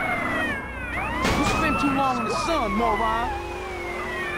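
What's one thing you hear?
Tyres screech as a car skids.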